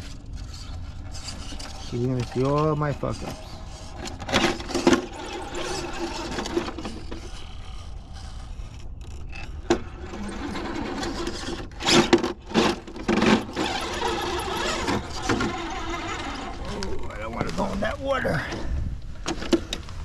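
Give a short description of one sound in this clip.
A small electric motor whirs and strains in bursts.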